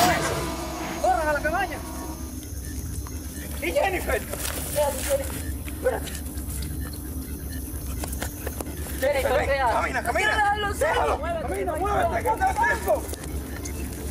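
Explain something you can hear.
A young man shouts and yells in alarm.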